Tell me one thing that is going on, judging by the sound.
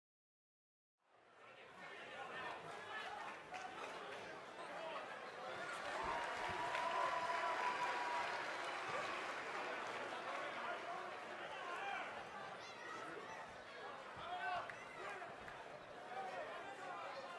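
A large crowd cheers and roars loudly in a big echoing arena.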